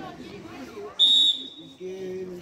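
A referee's whistle blows a short sharp blast.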